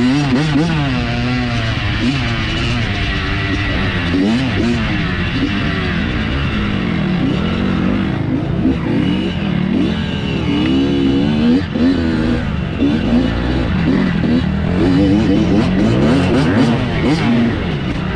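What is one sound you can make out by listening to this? A dirt bike engine revs up and down hard and close by.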